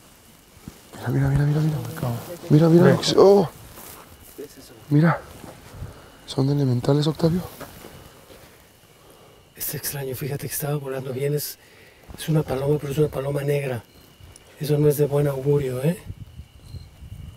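Men talk with animation, close by.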